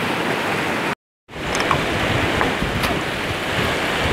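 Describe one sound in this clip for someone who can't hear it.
Hands splash in shallow water.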